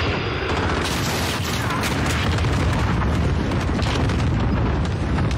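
Rapid gunfire crackles and echoes.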